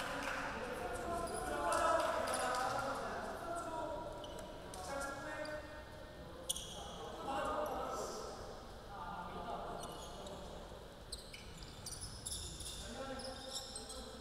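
Young men shout to each other in an echoing gym.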